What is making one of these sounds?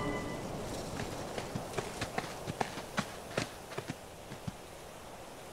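Light footsteps tap on a dirt path.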